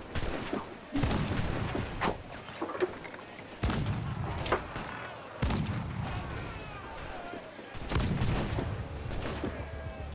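Cannons boom and guns fire in loud bursts.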